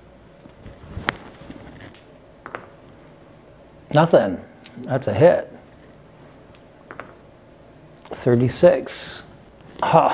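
Dice clatter and roll across a table.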